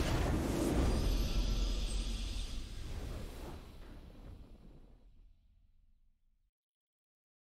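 A triumphant game fanfare swells and fades out.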